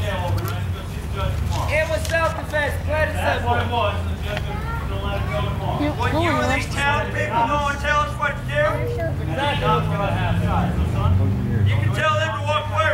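A man speaks loudly and with animation outdoors.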